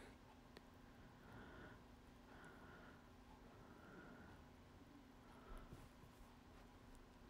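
Fingers rustle softly through hair.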